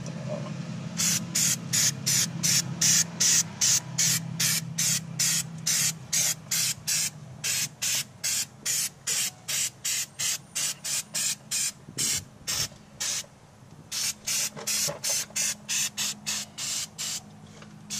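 An aerosol spray can hisses in short, quick bursts, close by.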